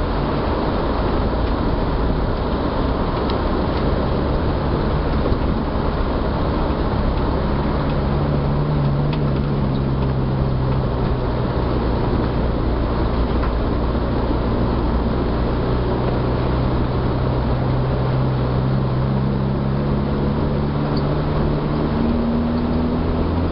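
A car engine hums steadily from inside the car, its pitch rising and falling slightly as the car drives.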